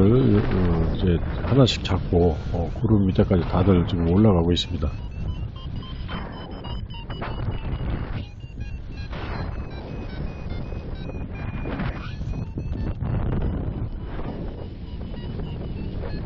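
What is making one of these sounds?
Wind rushes loudly past a microphone high in the open air.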